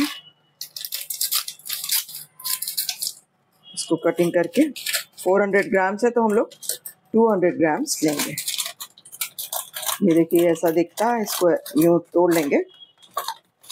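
A paper and foil wrapper crinkles and rustles as it is torn open.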